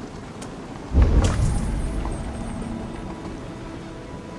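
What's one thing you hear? A loud burst booms and rumbles away.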